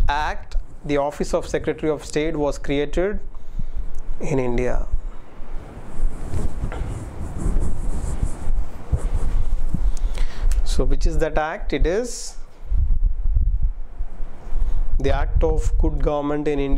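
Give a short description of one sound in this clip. A young man speaks calmly into a close microphone, pausing between phrases.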